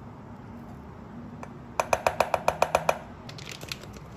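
A metal scoop scrapes rice from a pot.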